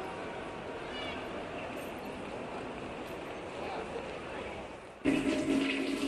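Water splashes from a fountain.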